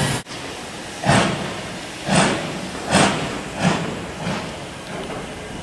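A steam locomotive chuffs in slow, heavy puffs a short way off.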